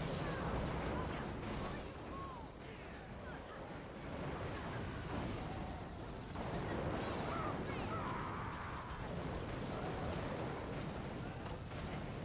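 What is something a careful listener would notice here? Fire whooshes and roars in bursts.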